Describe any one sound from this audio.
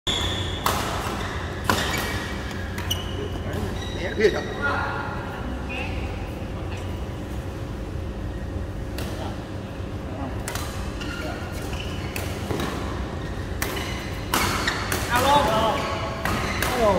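Shuttlecocks are struck with sharp smacks of rackets in a large echoing hall.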